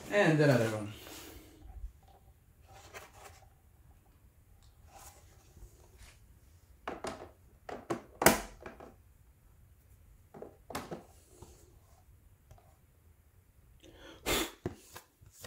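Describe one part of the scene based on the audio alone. Hard plastic cases clack and tap against each other as they are handled.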